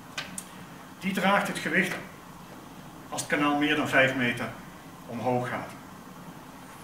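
A man speaks calmly, close by, in short phrases.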